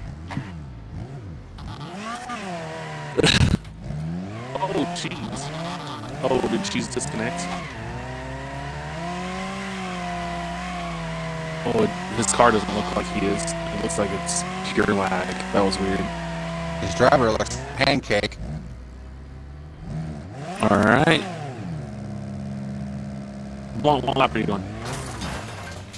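A racing car engine revs and whines up and down.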